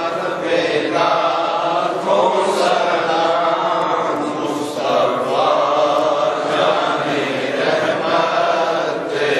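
A man chants a prayer in a slow, drawn-out voice, echoing through a large hall.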